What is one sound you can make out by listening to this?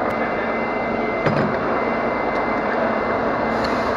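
A heavy metal disc clanks into a lathe chuck.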